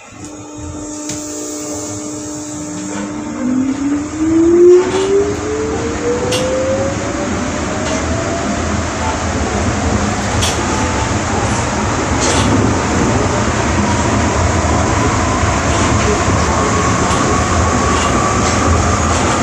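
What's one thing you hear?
Train wheels rumble and clatter on the track.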